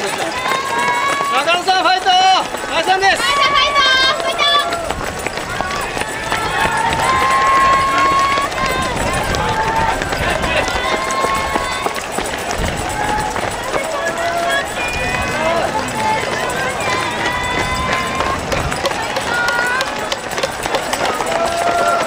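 A crowd of spectators cheers and shouts close by, outdoors.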